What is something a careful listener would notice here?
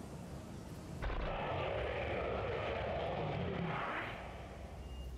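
A dinosaur roars loudly.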